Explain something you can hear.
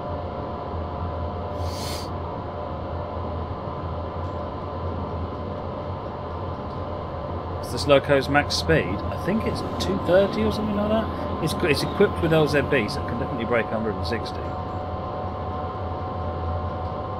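A train's engine hums steadily while the train rolls along the rails.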